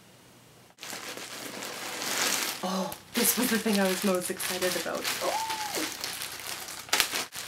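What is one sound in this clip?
A plastic wrapper crinkles and rustles in hands.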